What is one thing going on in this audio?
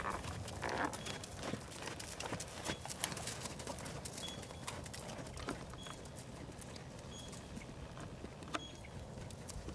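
A horse's hooves thud on soft dirt at a steady trot.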